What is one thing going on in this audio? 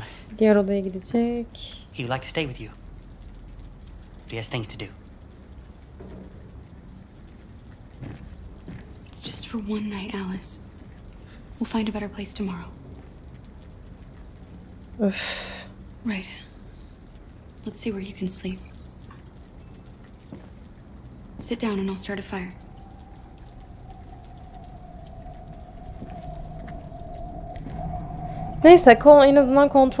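A young woman talks quietly into a close microphone.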